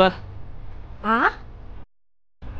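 A young woman speaks with surprise nearby.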